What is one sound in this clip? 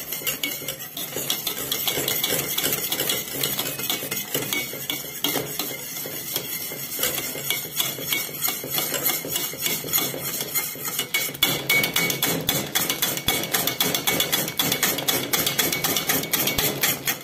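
A wire whisk beats liquid in a metal pot with rapid clattering and sloshing.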